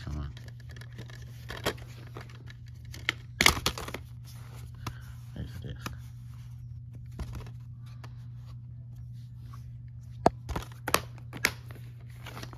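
A plastic case clicks and knocks as it is handled and opened.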